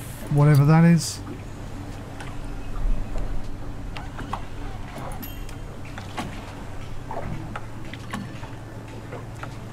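Water laps gently against a harbour wall.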